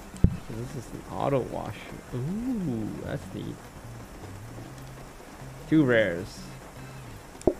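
A young man talks casually through a microphone.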